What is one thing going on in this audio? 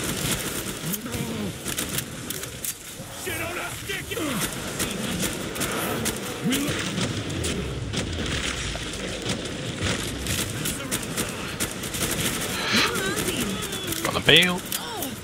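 Monsters shriek and growl.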